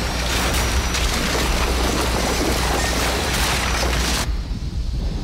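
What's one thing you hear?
Rocks and rubble crash and tumble down.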